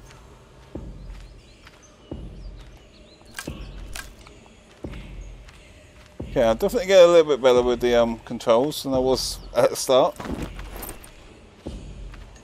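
Heavy footsteps thud slowly on soft ground.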